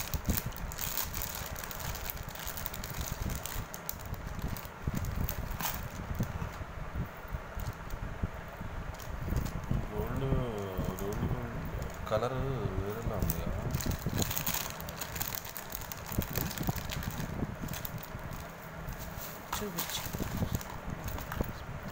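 Plastic wrap crinkles and rustles as it is handled.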